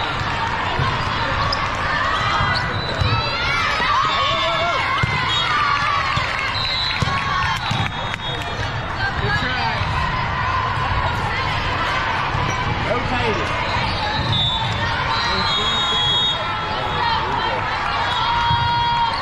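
A volleyball is struck with a firm slap.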